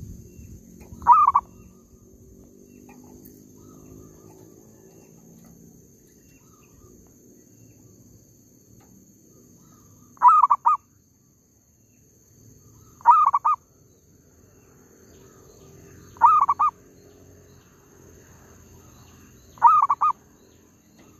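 A dove coos in short, repeated calls close by.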